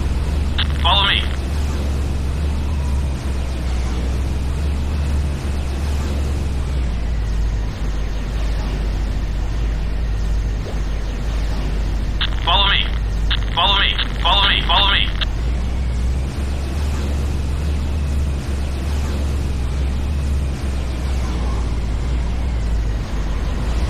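A hovering vehicle's engine hums low and steady.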